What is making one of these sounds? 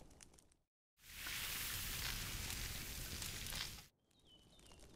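Meat sizzles loudly over a crackling fire.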